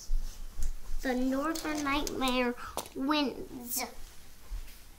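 A young child talks in a high, animated voice nearby.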